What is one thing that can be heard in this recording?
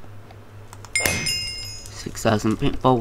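A bright video game chime rings.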